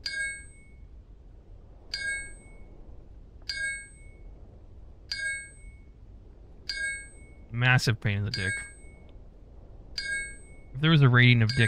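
A pickaxe strikes rock with sharp, ringing clinks at a steady pace.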